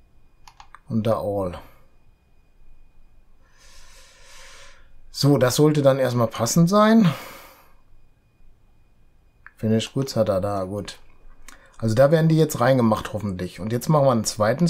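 A middle-aged man talks calmly and closely into a microphone, in short bursts.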